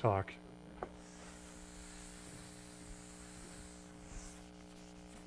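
An eraser wipes across a chalkboard.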